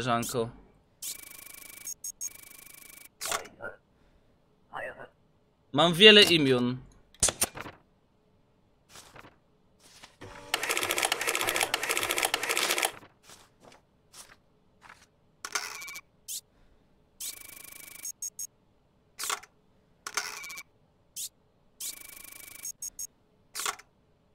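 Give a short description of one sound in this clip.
Game sound effects click and chime.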